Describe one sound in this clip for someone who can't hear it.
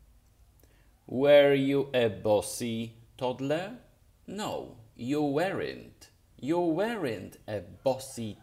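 A middle-aged man speaks with animation close to a microphone.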